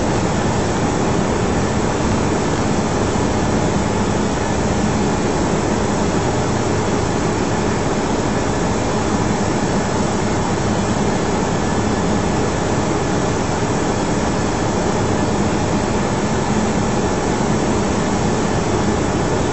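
Engines and rushing air roar steadily inside an aircraft in flight.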